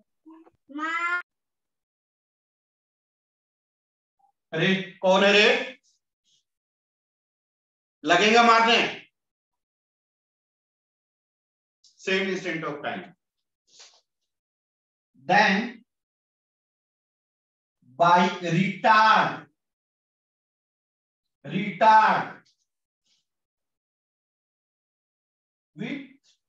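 A man speaks calmly in short phrases with long pauses, close by.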